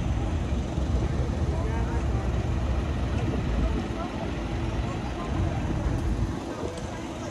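A truck engine rumbles nearby as it drives slowly past.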